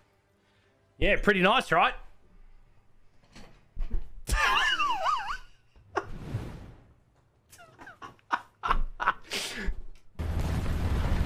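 A young man talks and laughs loudly into a close microphone.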